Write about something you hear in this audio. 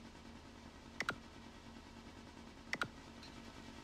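Game menu buttons click sharply.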